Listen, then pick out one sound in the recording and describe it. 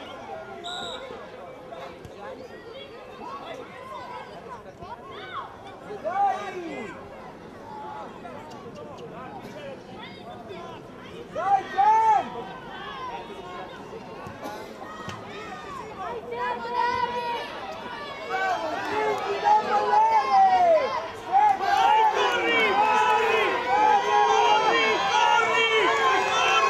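Young boys shout and call out to one another outdoors, growing louder and more excited toward the end.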